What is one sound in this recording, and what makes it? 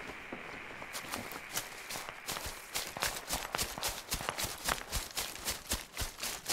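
Footsteps rustle through grass at a steady walking pace.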